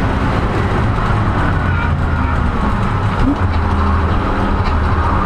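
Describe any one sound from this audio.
A race car engine roars loudly and steadily from inside the cabin.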